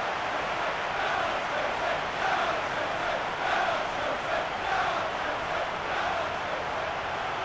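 A crowd cheers loudly as a goal goes in.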